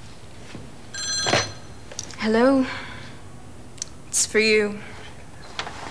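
A young woman talks into a telephone.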